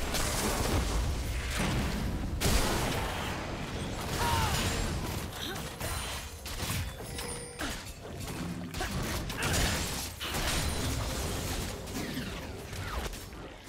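Spell effects whoosh and crackle as game characters fight.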